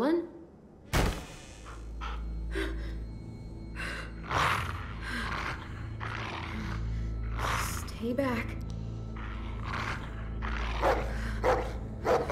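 A dog growls low and steadily.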